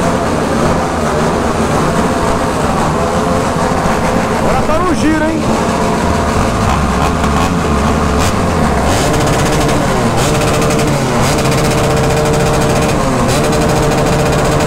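Motorcycle engines rev loudly.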